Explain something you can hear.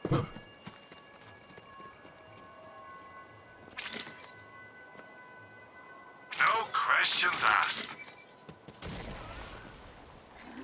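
Short electronic blips sound as a game menu selection moves.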